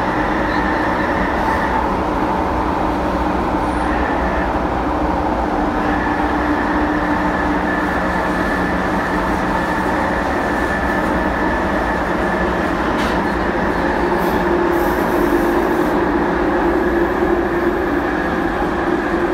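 A subway train rumbles and roars loudly along the tracks.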